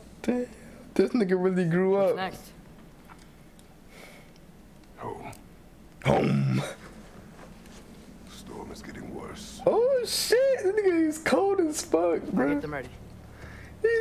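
A young man talks and laughs close to a microphone.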